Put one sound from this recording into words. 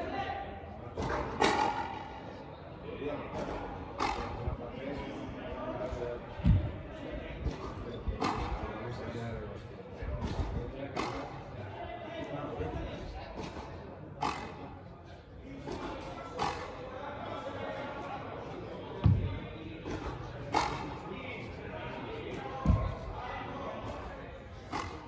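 A ball smacks sharply against a wall and racquets, echoing in a large hall.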